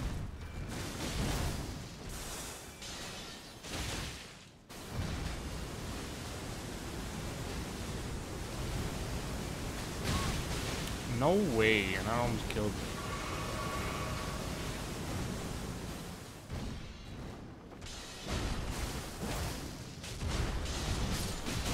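Flames whoosh and crackle in bursts.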